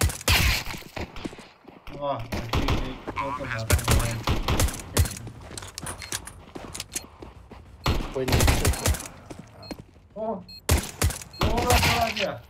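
A silenced pistol fires muffled shots.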